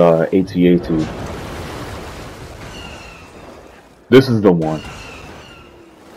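Water splashes and sloshes as someone swims through it.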